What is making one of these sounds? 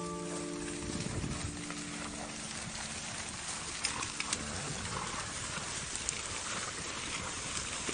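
Horses gallop over grass with soft thudding hooves.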